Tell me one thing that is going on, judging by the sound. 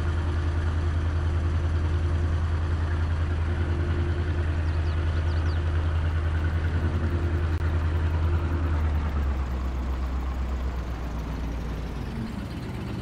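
A small tractor engine rumbles steadily at idle.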